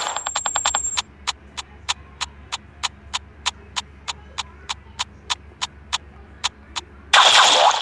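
Light footsteps tap at a steady, even pace.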